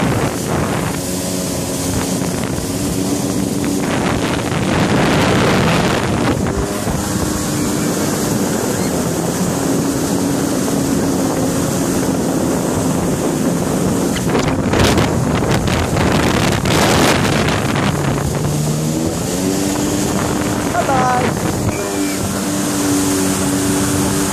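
Water rushes and splashes behind a speeding boat.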